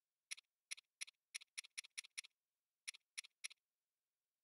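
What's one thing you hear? Menu selection clicks tick quickly.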